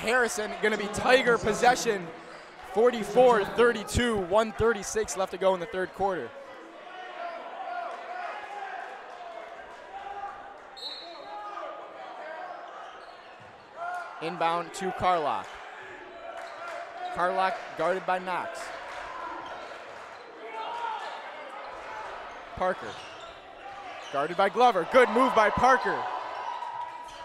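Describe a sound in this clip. A crowd murmurs in an echoing gym.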